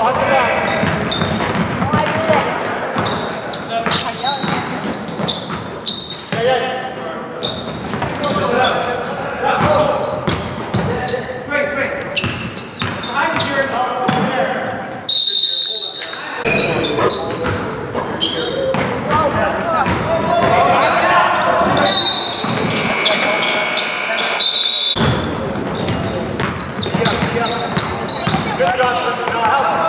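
A basketball thuds as it is dribbled.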